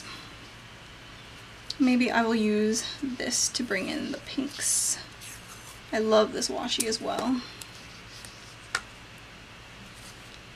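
Adhesive tape peels off a roll with a soft crackle.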